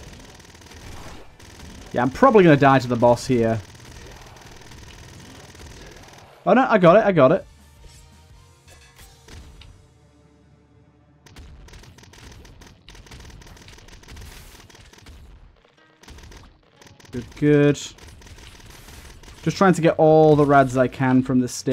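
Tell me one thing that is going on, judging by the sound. Small guns fire in rapid bursts.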